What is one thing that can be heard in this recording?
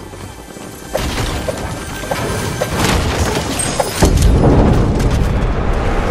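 A pickaxe smashes and breaks through wooden objects.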